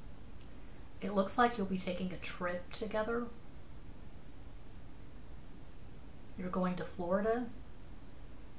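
A woman speaks softly and close by, in two short bursts.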